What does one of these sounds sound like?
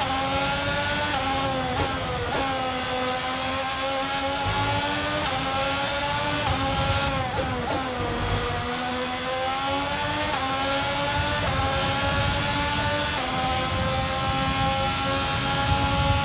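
A racing car engine screams at high revs, its pitch dropping with each gear change and climbing again.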